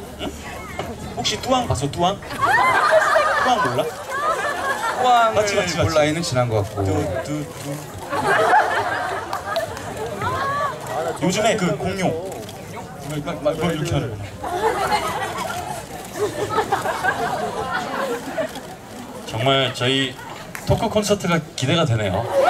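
Young men talk with animation into microphones, heard through loudspeakers outdoors.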